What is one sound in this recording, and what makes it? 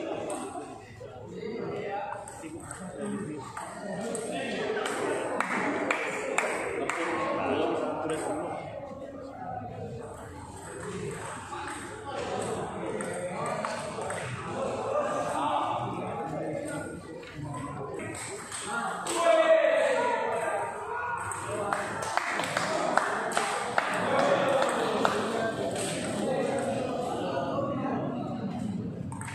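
A crowd of men and women chatter in the background.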